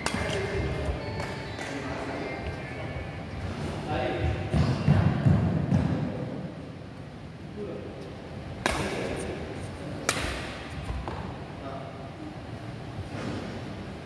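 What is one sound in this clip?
Rackets smack a shuttlecock with sharp cracks in a large echoing hall.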